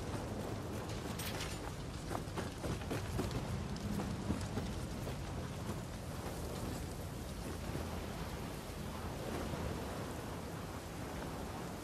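Footsteps thud on wooden boards and stairs.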